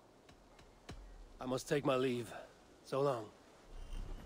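A second man answers calmly, close by.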